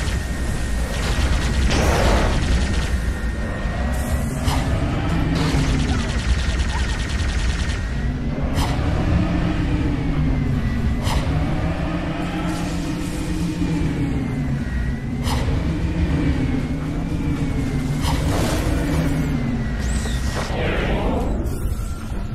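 A flying craft's engine hums and wavers in pitch.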